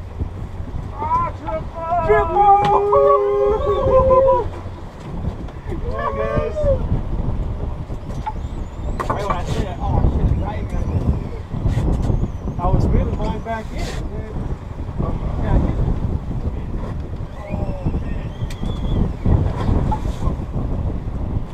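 Men shout excitedly to each other nearby.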